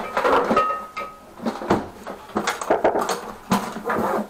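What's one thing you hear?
A plastic panel scrapes and bumps on a hard floor.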